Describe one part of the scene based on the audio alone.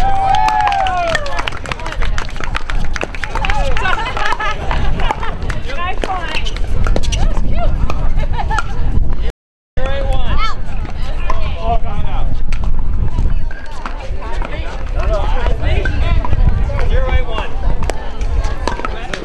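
Paddles pop against plastic balls on several courts.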